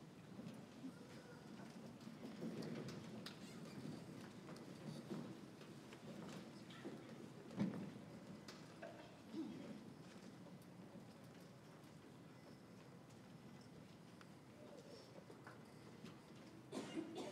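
A choir of teenage boys and girls sings softly in a large hall.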